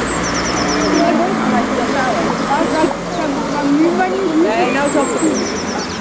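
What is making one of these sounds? Men talk calmly a short distance away outdoors.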